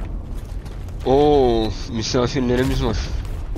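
A young man speaks with animation close to a headset microphone.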